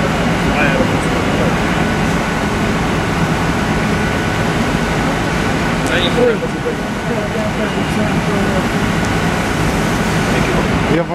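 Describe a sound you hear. A fire engine's motor idles steadily nearby.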